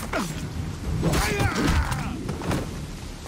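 A man cries out in pain.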